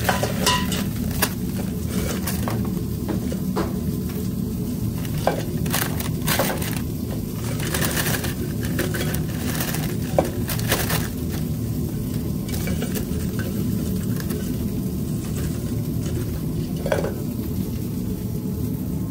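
Fries rustle and scrape against a metal bowl.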